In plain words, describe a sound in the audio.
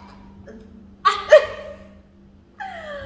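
Two young women laugh loudly close by.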